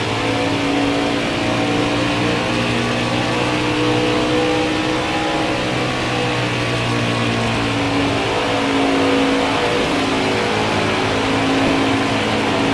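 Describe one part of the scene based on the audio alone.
A racing truck engine roars steadily at high speed.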